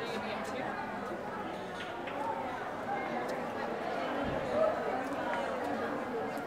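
Many people talk in a murmur of distant voices outdoors.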